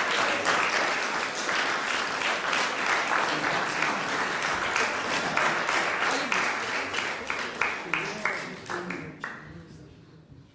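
An audience applauds loudly in an echoing hall, and the applause dies away.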